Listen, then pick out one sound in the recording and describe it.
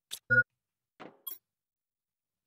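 A metal locker door clicks open.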